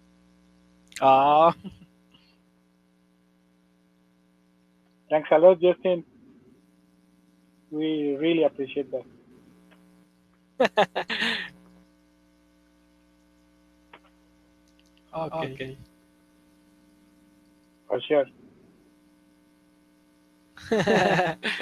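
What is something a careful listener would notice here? A young man speaks in short bursts over an online call.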